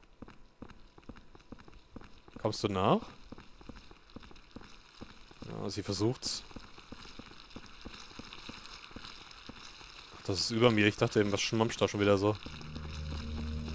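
Footsteps thud steadily down stone stairs.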